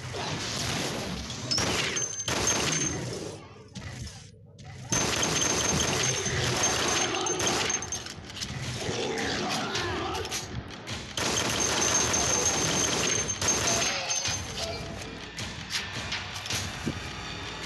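A pistol fires shot after shot.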